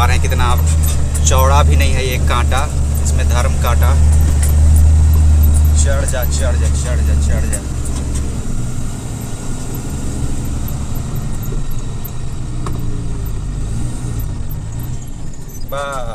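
Tyres rumble and rattle over a rough, bumpy road.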